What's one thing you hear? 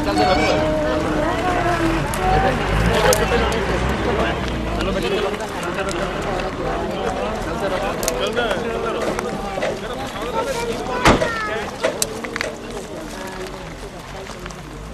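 A crowd of men and women talk and murmur nearby, outdoors.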